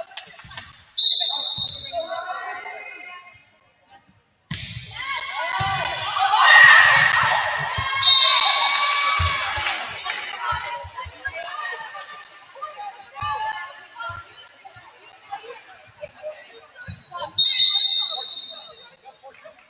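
A referee's whistle blows sharply in a large echoing gym.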